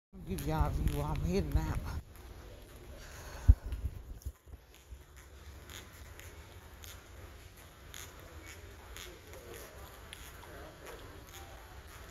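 Footsteps sound faintly on a hard floor in a large, echoing hall.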